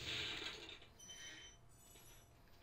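A bright, tinkling chime rings briefly.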